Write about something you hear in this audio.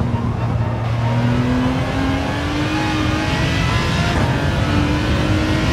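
A racing car engine roars and rises in pitch as it speeds up.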